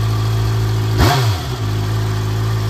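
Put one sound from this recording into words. A motorcycle engine revs briefly and drops back to idle.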